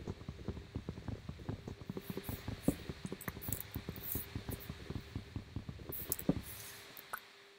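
Blocks crack and knock rapidly as they are broken.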